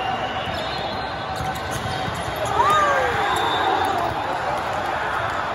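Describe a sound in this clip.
Many voices murmur and chatter in a large echoing hall.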